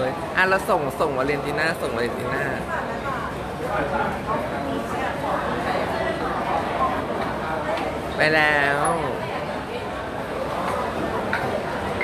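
A woman's high heels click on a hard floor.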